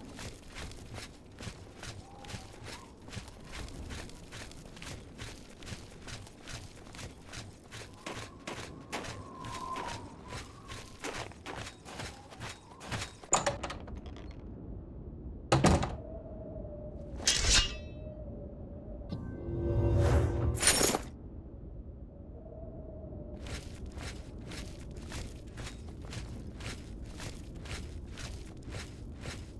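Footsteps crunch steadily over the ground.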